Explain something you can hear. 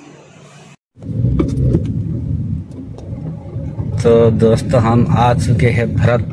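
A car drives along a road, its engine and tyres rumbling steadily.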